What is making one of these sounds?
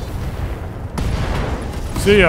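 An explosion rumbles and roars.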